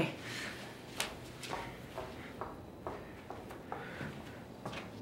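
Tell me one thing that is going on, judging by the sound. Footsteps slowly walk away on a hard floor.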